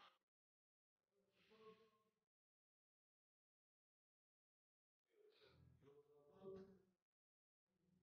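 A young man sobs softly.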